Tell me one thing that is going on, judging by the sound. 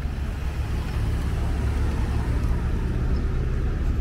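A car drives slowly past close by.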